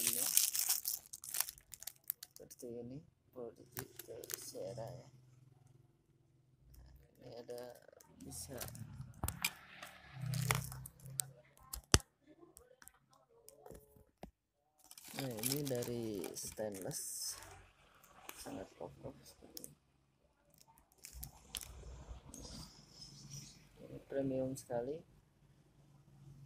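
A small plastic device clicks and taps as hands handle it.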